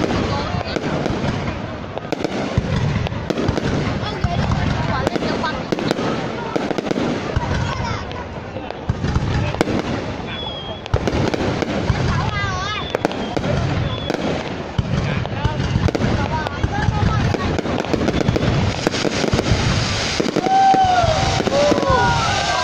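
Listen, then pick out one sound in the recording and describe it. Fireworks burst and crackle overhead in rapid succession.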